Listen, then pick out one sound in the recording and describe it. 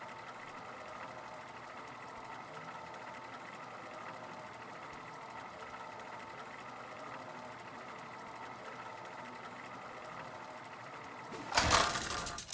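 A mechanical wheel whirs and clicks steadily as it spins.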